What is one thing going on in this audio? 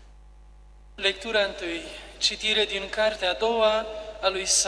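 An adult man speaks calmly into a microphone.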